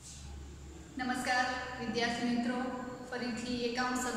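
A young woman speaks calmly and clearly close to a microphone.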